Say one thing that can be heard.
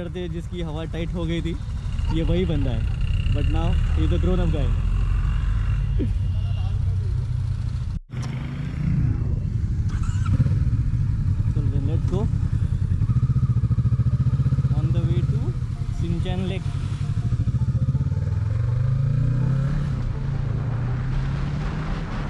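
A motorcycle engine rumbles steadily and revs up while riding.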